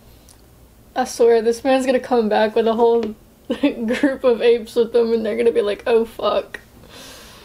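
A young woman talks and laughs with animation close to a microphone.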